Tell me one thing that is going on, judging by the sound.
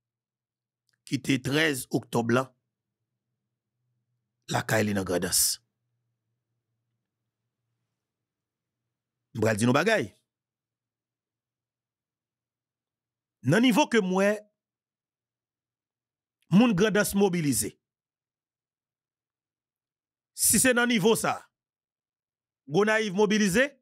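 A man speaks with animation into a close microphone, in short bursts separated by silences.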